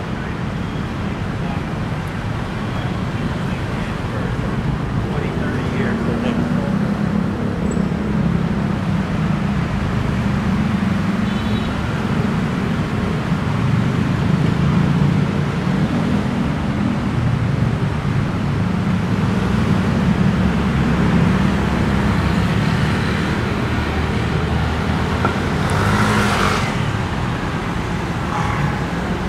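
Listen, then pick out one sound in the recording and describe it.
City traffic rumbles steadily along a busy street outdoors.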